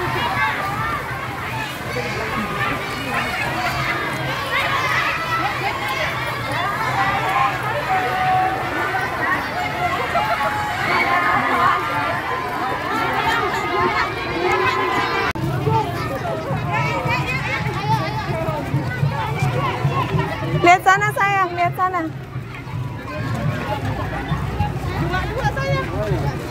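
A crowd of young children chatter and call out nearby, outdoors.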